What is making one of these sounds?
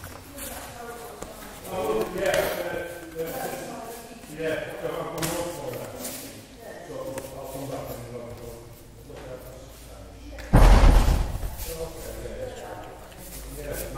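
A man talks in an echoing hall.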